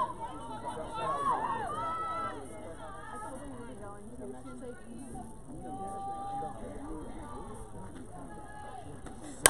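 Young women shout and cheer from across an open field.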